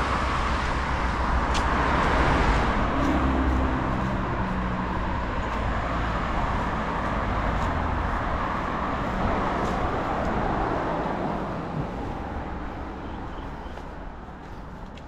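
Cars pass by on a nearby road with a steady rushing hum that slowly fades.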